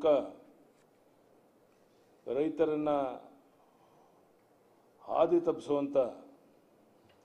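An elderly man speaks slowly and formally into microphones, in short phrases with pauses.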